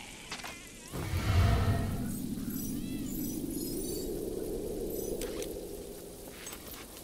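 A magical shimmer swells and slowly fades.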